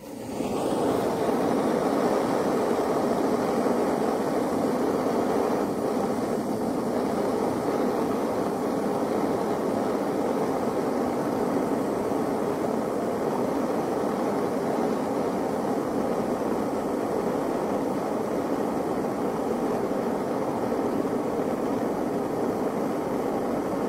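A gas torch roars steadily close by.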